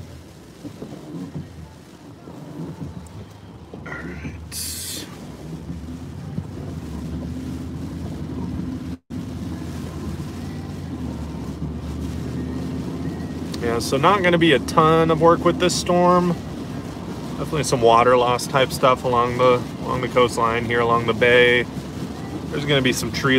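Heavy rain patters on a car's windshield.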